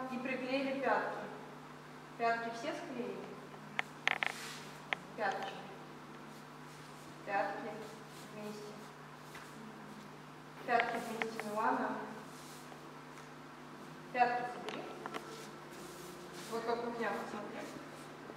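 A young woman speaks calmly, giving instructions.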